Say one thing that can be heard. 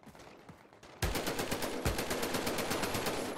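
A machine gun fires in rapid bursts, loud and close.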